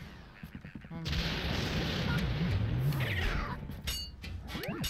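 A video game vacuum whooshes and hisses loudly.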